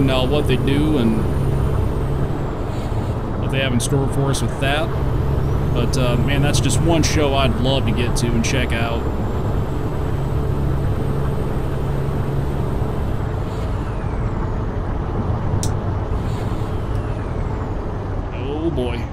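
A truck engine rumbles steadily as it drives.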